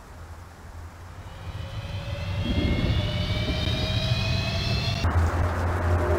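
A hovering craft's engine starts with a low rumble and a whine that rises in pitch as it lifts off.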